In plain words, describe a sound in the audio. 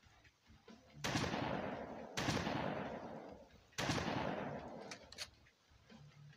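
Loud rifle shots boom and echo away.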